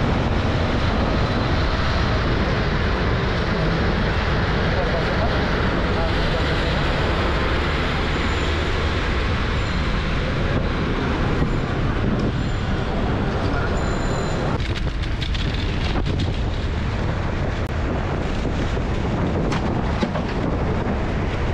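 Traffic hums along a busy street.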